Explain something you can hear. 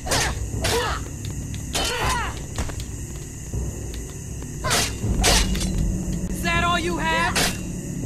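Metal blades clash against a shield in sharp, repeated blows.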